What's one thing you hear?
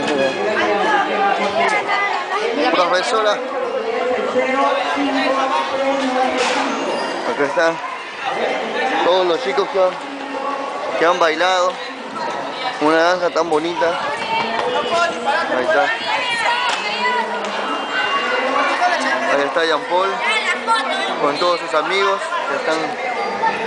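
A crowd of children chatter and shout close by.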